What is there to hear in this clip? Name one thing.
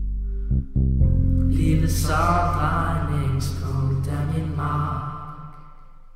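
A young man sings up close.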